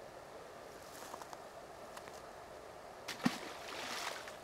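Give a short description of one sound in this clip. A fish splashes briefly into the water.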